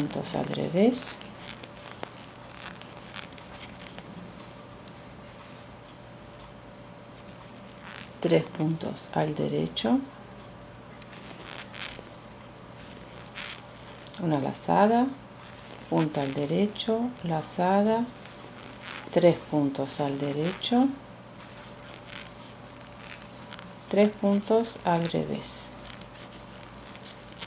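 Metal knitting needles click and scrape softly against each other.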